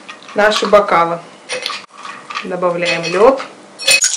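Ice cubes clink in a glass bowl.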